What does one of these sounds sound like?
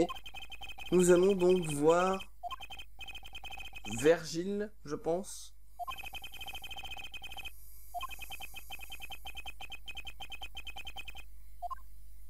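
Rapid, high electronic blips tick in a steady stream.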